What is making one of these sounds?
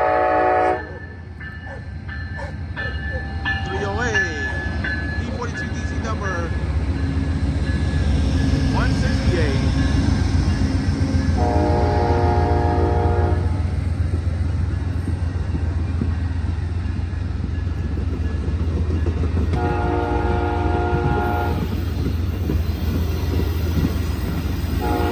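A train rumbles past close by, its wheels clattering over the rails.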